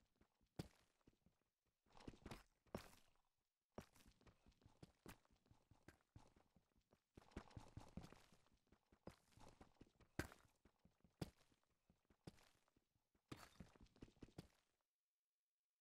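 A pickaxe chips and breaks stone blocks with repeated sharp knocks.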